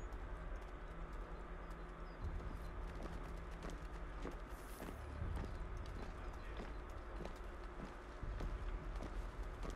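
Several pairs of boots march in step on a dirt path.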